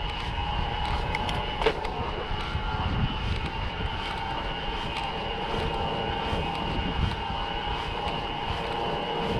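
An electric bike motor hums steadily.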